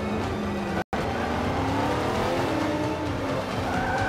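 Tyres screech as a car skids through a corner.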